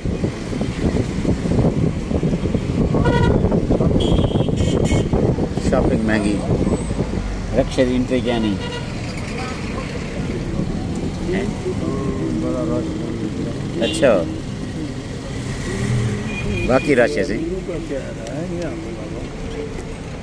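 Cars and minibuses drive past on a busy street.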